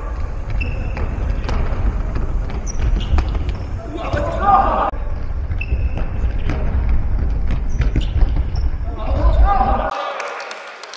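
Sneakers squeak sharply on a hard indoor court.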